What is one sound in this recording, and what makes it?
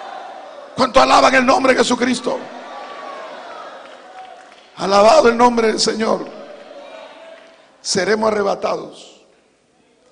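A middle-aged man speaks forcefully into a microphone in an echoing hall, in short bursts.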